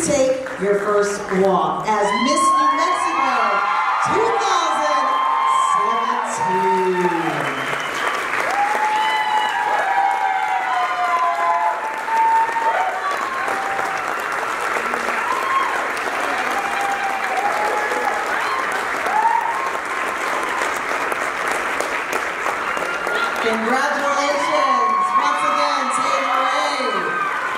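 Women in a crowd cheer and scream with excitement.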